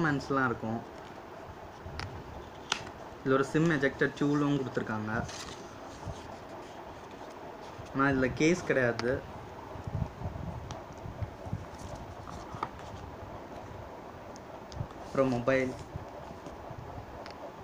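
Cardboard packaging rustles and scrapes as hands handle it.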